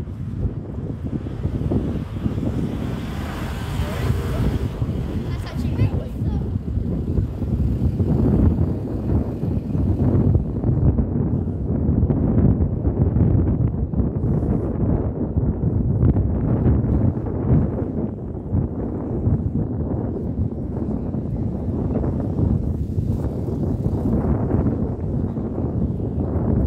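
Wind buffets and rumbles outdoors.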